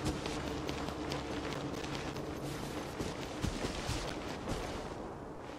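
Footsteps run quickly across sand and dry grass.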